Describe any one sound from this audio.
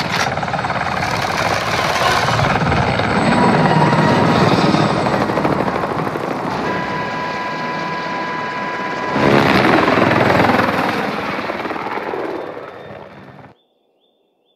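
A helicopter's rotor thumps loudly and steadily.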